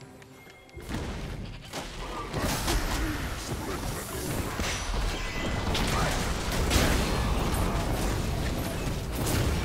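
Magic blasts and spell effects crackle and boom in a busy fight.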